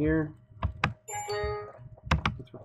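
A short computer alert chime sounds.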